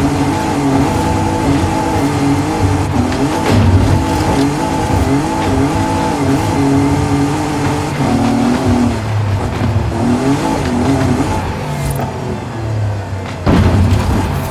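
Tyres rumble over rough dirt and gravel.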